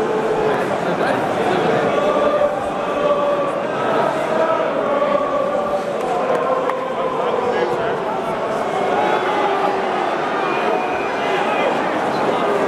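A large stadium crowd sings and chants loudly in unison.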